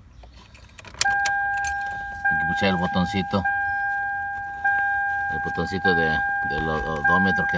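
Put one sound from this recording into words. A car's warning chime dings over and over at a steady pace.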